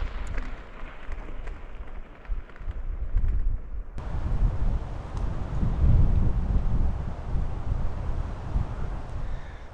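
Bicycle tyres crunch over gravel.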